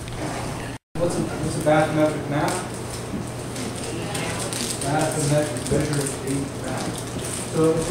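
A middle-aged man speaks calmly to a room.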